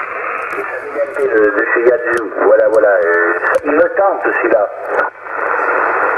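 A man's voice comes crackling through a radio loudspeaker.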